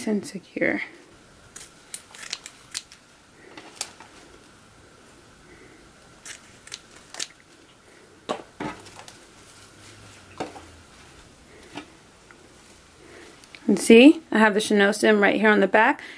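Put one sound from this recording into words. Plastic ribbon rustles and crinkles as it is handled.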